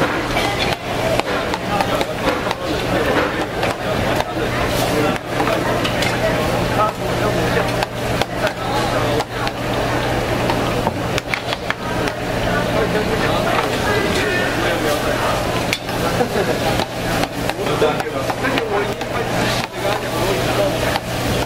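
Hot oil bubbles and sizzles steadily as food fries.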